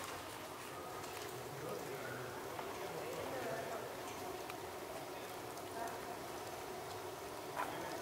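Footsteps tap on cobblestones nearby.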